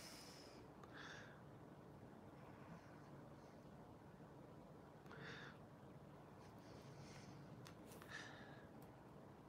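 A man exhales softly.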